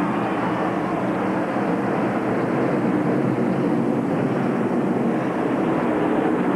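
A pack of race cars roars past with loud engines.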